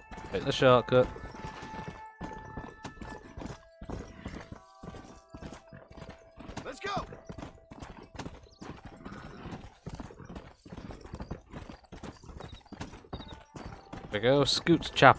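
A horse gallops steadily, its hooves thudding on dry ground.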